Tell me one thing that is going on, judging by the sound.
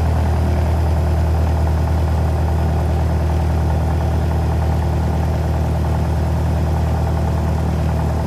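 Tyres rumble along a runway.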